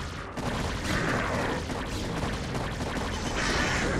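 An electric storm crackles and hisses.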